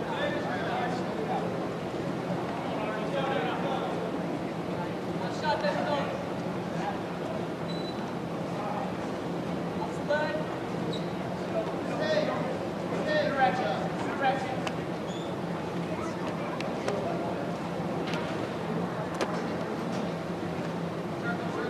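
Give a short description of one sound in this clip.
Wrestlers' shoes squeak on the mat.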